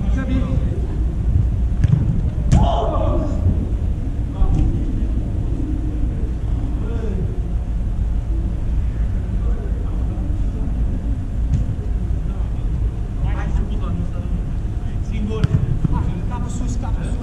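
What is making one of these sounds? Men shout to each other in the distance in a large echoing dome.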